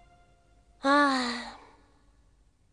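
A young girl sighs softly.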